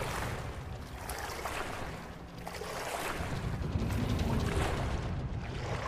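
Low water rumbles steadily.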